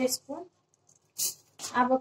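Sugar pours into a metal jar.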